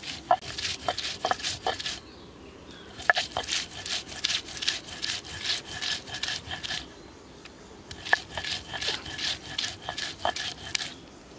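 Stone knocks against stone as a roller rocks on a grinding slab.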